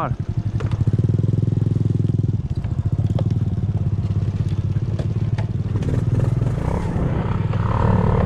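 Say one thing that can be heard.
A small motorcycle engine putters steadily up close.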